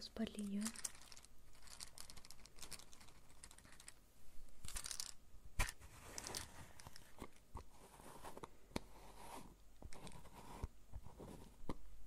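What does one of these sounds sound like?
Fingers tap and scratch lightly close to a microphone.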